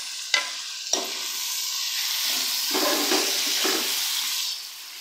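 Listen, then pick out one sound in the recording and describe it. Tomatoes sizzle in hot oil in a pan.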